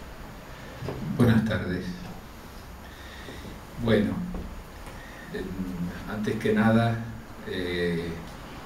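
A man speaks into a microphone at a lectern, heard through loudspeakers in an echoing hall.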